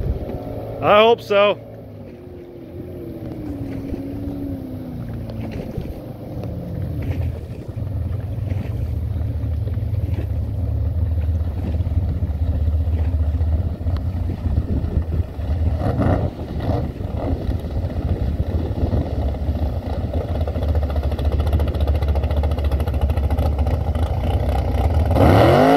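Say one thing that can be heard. A speedboat engine roars across open water and grows louder as the boat approaches.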